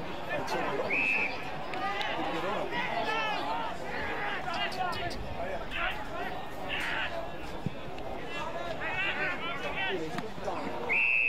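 An umpire blows short blasts on a whistle.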